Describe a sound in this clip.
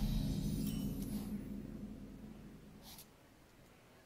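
A game chime rings out and slowly fades.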